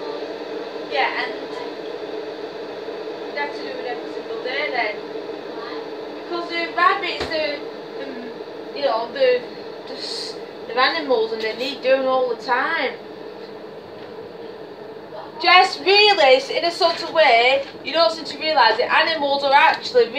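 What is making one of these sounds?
A young woman talks nearby.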